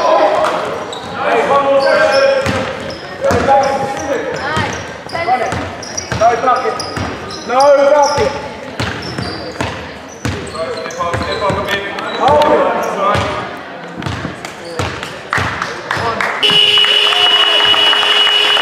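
A basketball bounces repeatedly on the floor.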